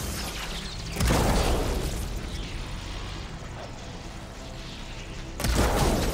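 Electric sparks crackle and fizz.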